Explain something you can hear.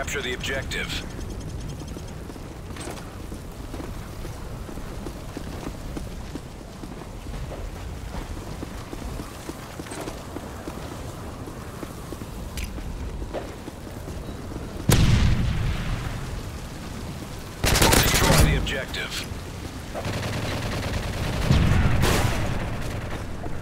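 Boots run on hard ground.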